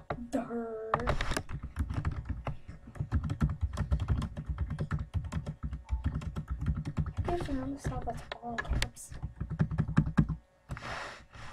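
Keys clatter rapidly on a keyboard.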